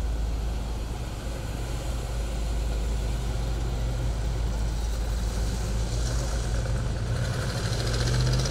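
A car engine rumbles deeply as the car drives past and pulls away.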